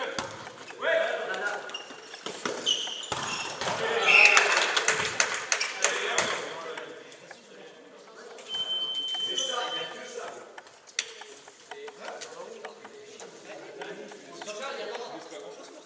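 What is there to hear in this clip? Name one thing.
A volleyball is struck and bounces in a large echoing hall.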